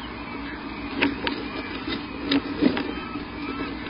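Twigs crackle and snap as a large bird shifts about in its nest.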